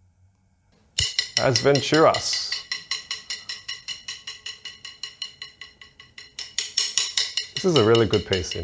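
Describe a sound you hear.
Drumsticks tap in a quick, steady rhythm.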